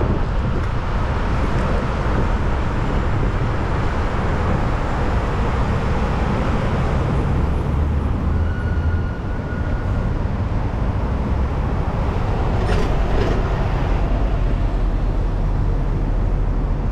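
City traffic hums and rolls by nearby.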